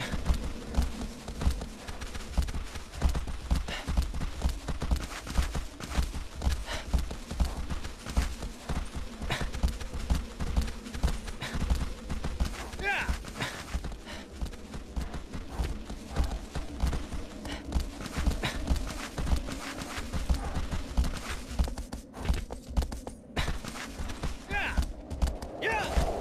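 A horse gallops with heavy rhythmic hoofbeats.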